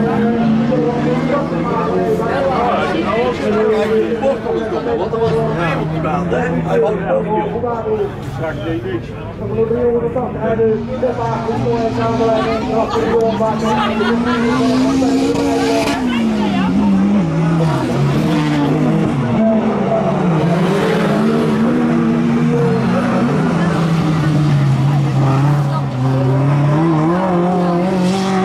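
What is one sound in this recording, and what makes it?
Race car engines roar and rev across a dirt track throughout.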